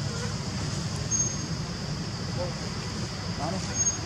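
A monkey gives soft, short calls nearby.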